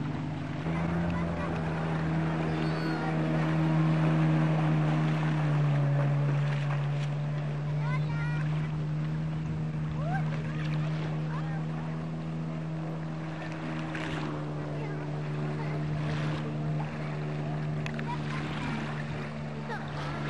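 A jet ski engine drones steadily across water.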